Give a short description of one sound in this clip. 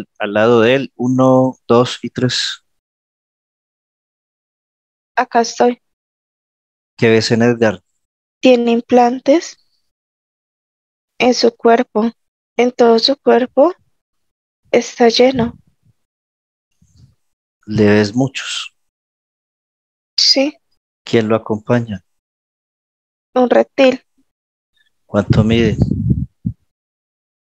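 A man speaks calmly in short phrases through a headset microphone on an online call.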